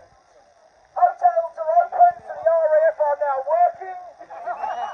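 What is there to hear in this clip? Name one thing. A man shouts through a megaphone outdoors.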